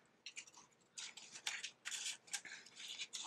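Paper cutouts rustle and scrape softly on a wooden table.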